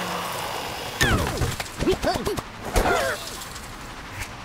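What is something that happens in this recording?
Wooden and stone blocks crash and clatter as a tower falls.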